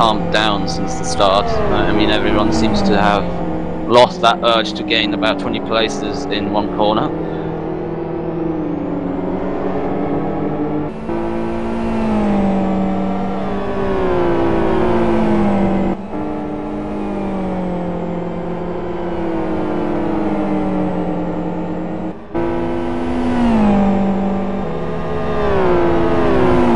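A racing car engine roars loudly, rising and falling in pitch as it shifts gears.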